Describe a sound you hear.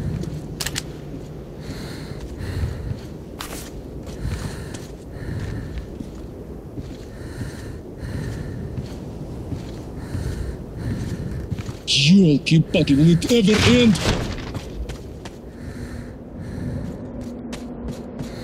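Heavy footsteps thud on stone and rubble.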